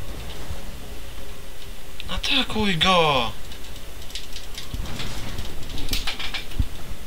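Video game sound effects whoosh and chime.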